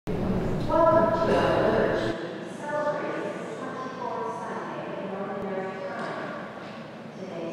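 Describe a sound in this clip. A man chants slowly through a microphone in a large echoing hall.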